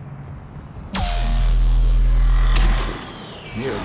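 A loud energy beam roars and blasts.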